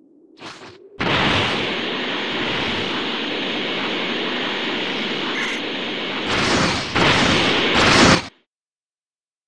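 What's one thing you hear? A charging energy aura roars steadily, then bursts.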